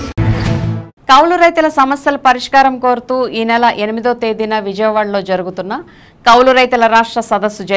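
A woman reads out calmly and clearly through a microphone.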